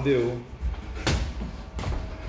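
Boxing gloves thud against each other.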